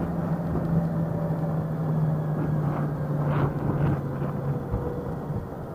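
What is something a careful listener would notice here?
An electric scooter's motor hums steadily, then cuts out.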